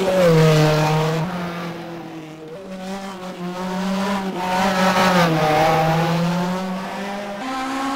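A racing car engine whines at high revs, shifting gears with brief changes in pitch.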